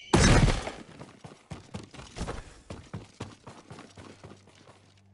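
Blades swish and strike in a quick sword fight.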